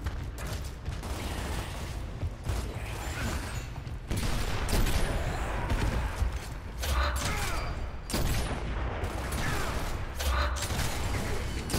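Gunfire crackles in loud bursts.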